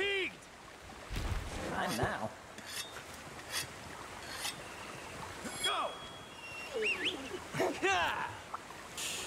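Blades clang and strike in quick hits.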